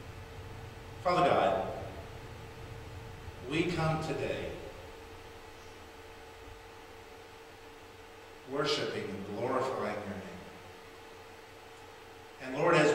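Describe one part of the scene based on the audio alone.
A man speaks calmly and slowly into a microphone in a large echoing room.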